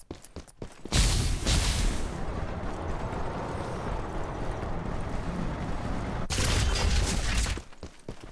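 A vehicle engine roars close by.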